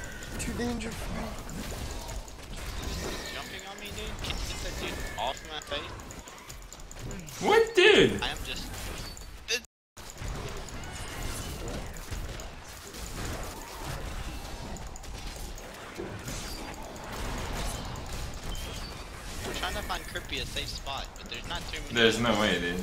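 Magic spells blast and crackle in quick bursts.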